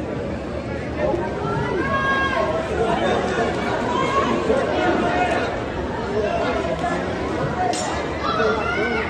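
Spectators yell loudly and excitedly.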